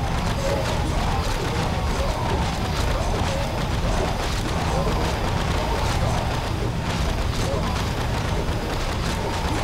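Weapons and spells strike again and again in a fast, noisy battle.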